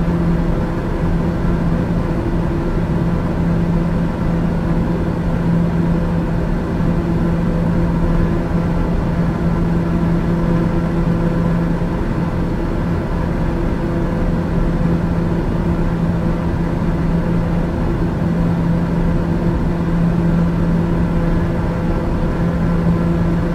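An aircraft engine drones steadily with a low hum inside the cabin.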